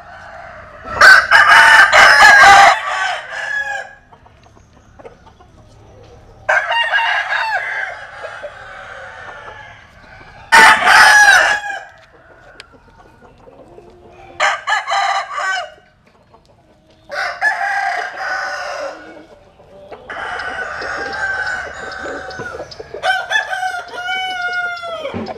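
A rooster crows loudly nearby, again and again.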